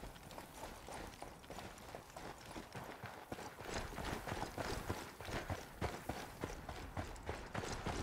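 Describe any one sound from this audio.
Footsteps crunch on rocky, snowy ground at a steady pace.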